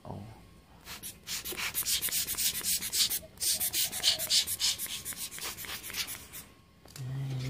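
Hands handle and knock against a metal casing, with rattling and rustling.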